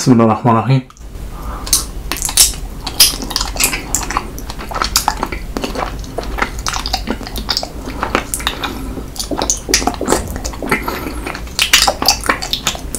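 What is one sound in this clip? Thick syrup squelches and slurps into a young man's mouth.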